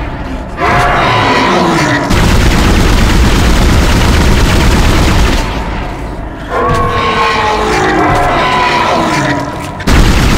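A monster shrieks and screeches.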